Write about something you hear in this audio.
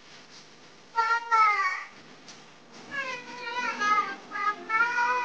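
A toddler wails and cries loudly nearby.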